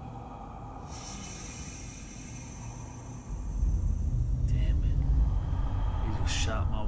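Steam hisses loudly as it fills an enclosed space.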